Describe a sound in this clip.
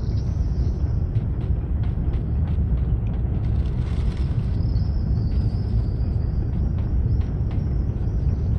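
Small footsteps patter on a wooden beam.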